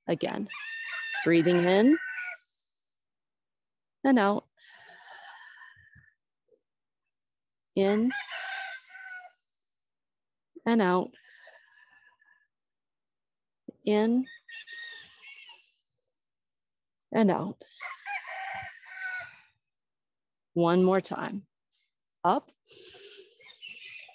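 A woman speaks calmly and clearly into a microphone, giving instructions in short phrases.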